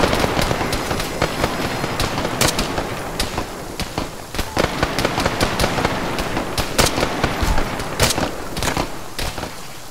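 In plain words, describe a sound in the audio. Rifle shots crack sharply, one at a time.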